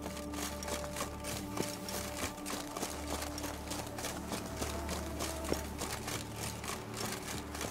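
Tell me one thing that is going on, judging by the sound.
Footsteps run quickly over stone paving.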